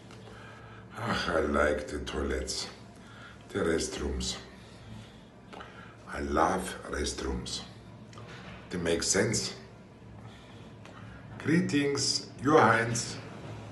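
An elderly man speaks with animation close to the microphone.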